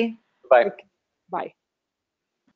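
A man speaks briefly and calmly over an online call.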